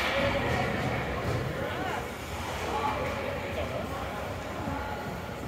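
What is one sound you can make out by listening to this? People in the crowd talk in a murmur, echoing in the rink.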